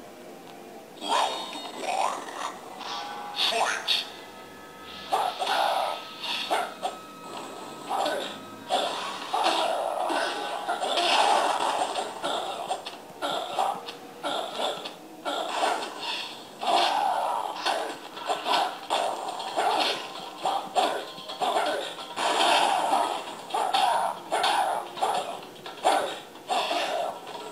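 Punches and blows from a fighting game thud out of a small loudspeaker.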